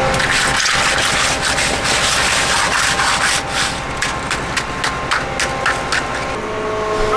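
A trowel scrapes and pats wet concrete.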